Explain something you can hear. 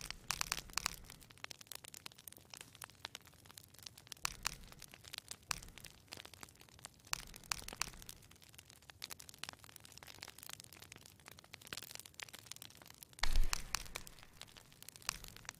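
Soft menu clicks sound as items are selected.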